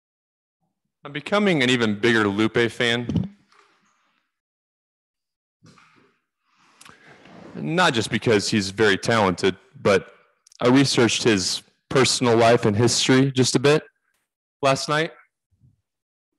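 A young man talks casually into a webcam microphone.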